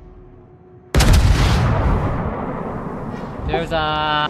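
Heavy naval guns fire with a deep, booming blast that rumbles away.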